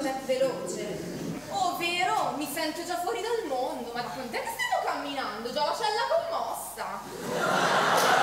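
Young women speak on a stage, heard from a distance in a large hall.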